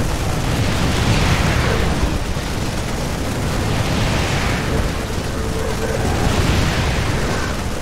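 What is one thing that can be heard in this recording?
Explosions boom during a battle.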